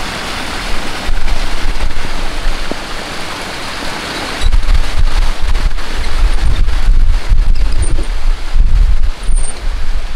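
Wind buffets the microphone in gusts outdoors.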